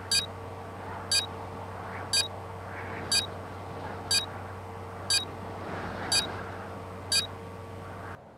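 A short electronic beep sounds once every second as a countdown runs down.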